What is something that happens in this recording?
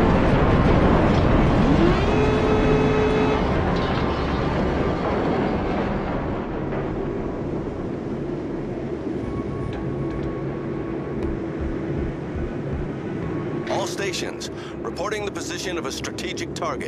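A large ship's engine rumbles low and steady.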